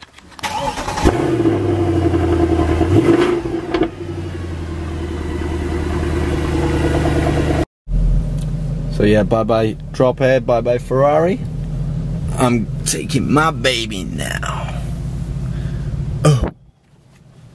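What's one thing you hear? A car engine starts, roars and then idles with a deep rumble.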